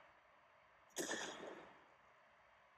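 An explosion bursts and rumbles briefly.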